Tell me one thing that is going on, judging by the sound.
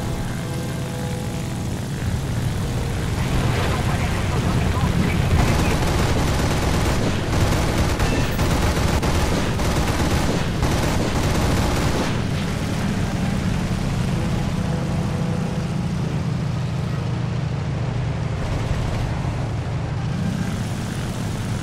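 A propeller plane's engine drones steadily, rising and falling as the plane turns.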